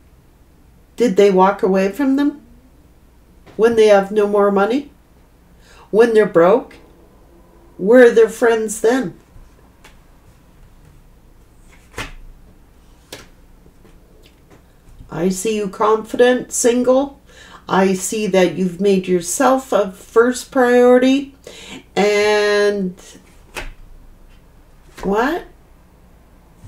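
A middle-aged woman speaks calmly and close to a microphone, in short bursts with pauses.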